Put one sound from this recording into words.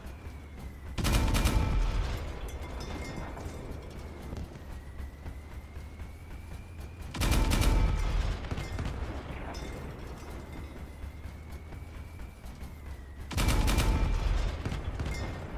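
Heavy guns fire loud bursts of shots.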